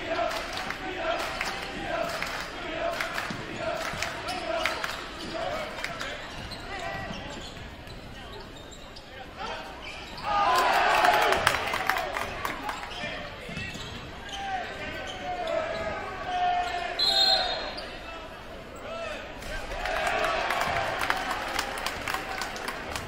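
A crowd cheers and chatters throughout.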